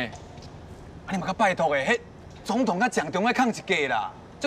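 A man speaks loudly and firmly outdoors.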